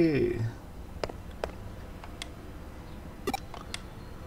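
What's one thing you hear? Short electronic menu blips sound.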